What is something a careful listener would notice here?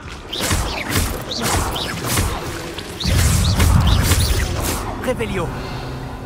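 Magic spells whoosh and burst loudly in quick succession.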